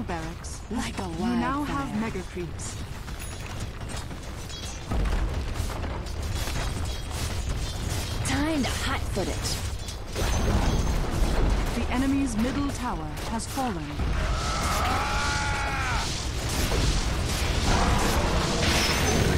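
Spells and attacks crackle and boom in a game battle.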